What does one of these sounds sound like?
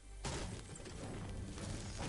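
A pickaxe strikes roof tiles with sharp knocks.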